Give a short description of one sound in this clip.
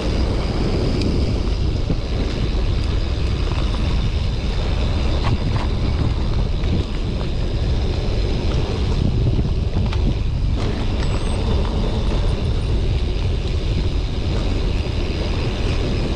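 Bicycle tyres rumble over a dirt trail.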